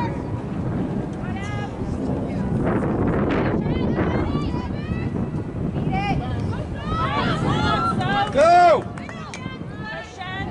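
Young women shout to each other across an open field.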